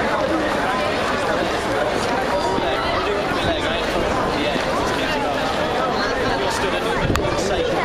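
A young man talks loudly to a crowd outdoors.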